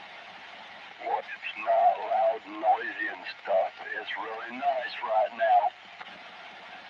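A man's voice comes through a crackly radio loudspeaker.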